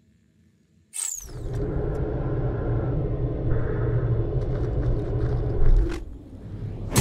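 A fiery game blast roars loudly.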